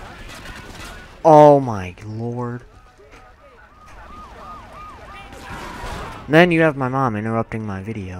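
Shotgun blasts ring out several times.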